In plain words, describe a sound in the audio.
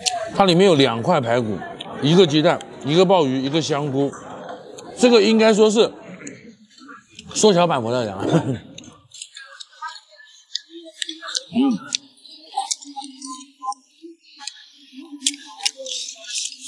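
A spoon clinks against a small bowl.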